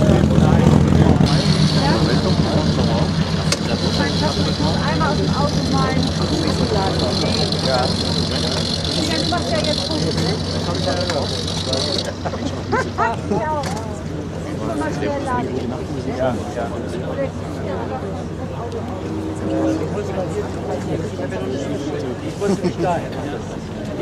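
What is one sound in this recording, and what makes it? Men talk casually in a crowd nearby.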